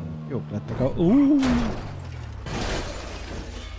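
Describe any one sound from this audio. A car crashes with a loud thud and shattering glass.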